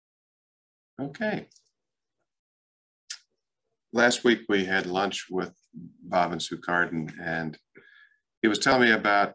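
A middle-aged man talks calmly and close to a microphone, with short pauses.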